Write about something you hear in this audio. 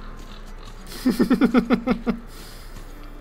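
A man laughs loudly, close to a microphone.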